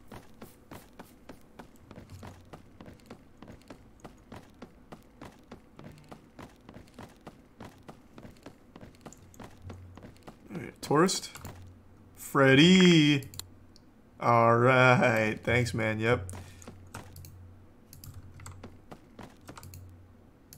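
Footsteps run quickly and steadily on a wooden boardwalk.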